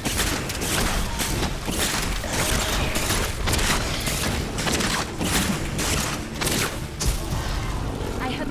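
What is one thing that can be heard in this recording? Weapons clash and magic blasts crackle in rapid bursts.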